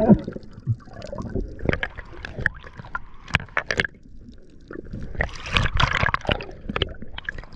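Air bubbles gurgle and rush underwater.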